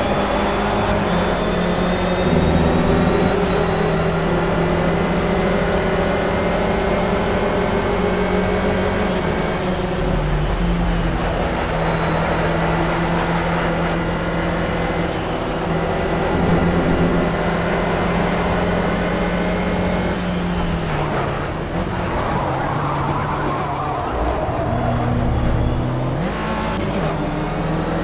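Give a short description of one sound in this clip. A race car engine roars steadily at high revs.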